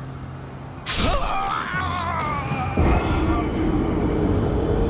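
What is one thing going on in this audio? A low, dramatic musical sting plays and swells.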